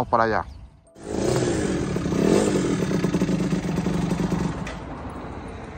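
A motorcycle engine idles and revs loudly close by.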